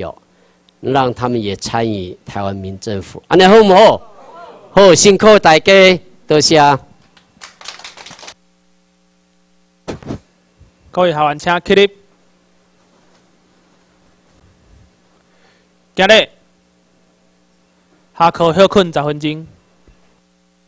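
A man speaks steadily through a microphone and loudspeakers, pausing between phrases.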